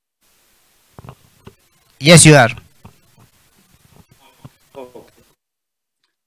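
An elderly man speaks briefly through an online call, asking a question.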